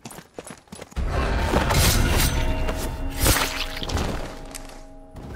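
A loud scuffle erupts with a heavy thud.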